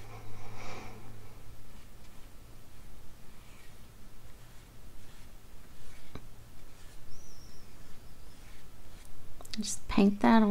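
A paintbrush swishes and taps in a dish of water.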